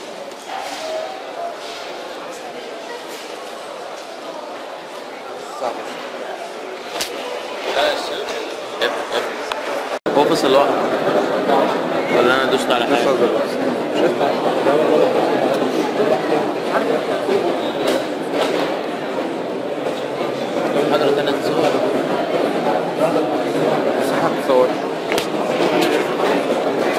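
A middle-aged man lectures at a distance.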